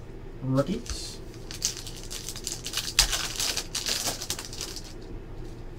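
A foil card pack crinkles and tears open as hands rip it.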